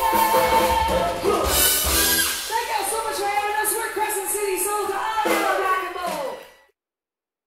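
A woman sings through a microphone with the band.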